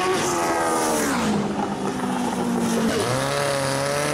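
A race car engine's pitch drops sharply as it passes.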